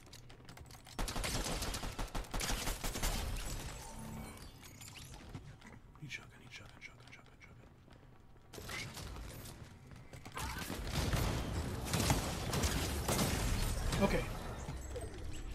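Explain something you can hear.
Rapid gunshots rattle in loud bursts.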